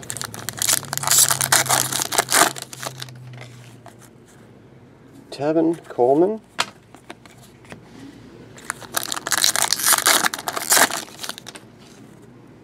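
A foil card pack crinkles and tears as hands rip it open.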